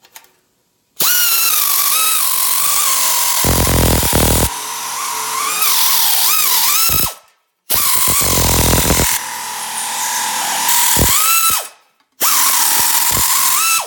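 A pneumatic nibbler chatters as it cuts through sheet steel, stopping briefly twice.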